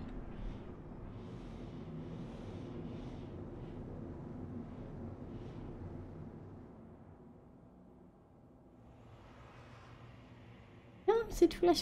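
A spacecraft engine hums and rumbles low and steadily, growing quieter midway.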